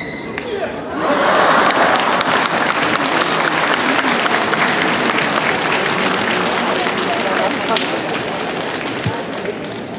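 A large crowd claps and cheers in an echoing hall.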